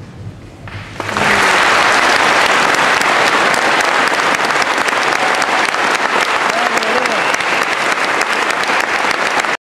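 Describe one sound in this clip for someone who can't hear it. An audience claps loudly in applause.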